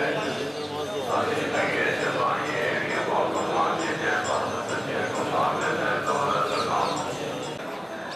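A man and a woman chatter nearby.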